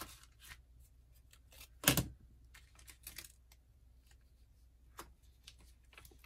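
A plastic package crinkles and clicks as it is handled.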